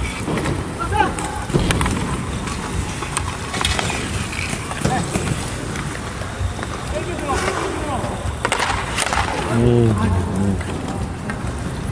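Skate wheels rumble steadily on a hard rink outdoors.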